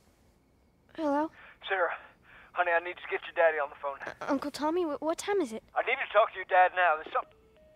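A young girl talks into a phone close by.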